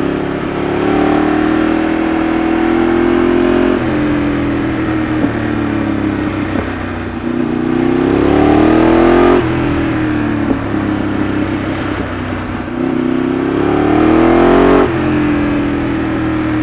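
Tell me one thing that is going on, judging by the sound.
A Ducati 848 V-twin sportbike accelerates through the gears, its revs climbing and dropping at each shift.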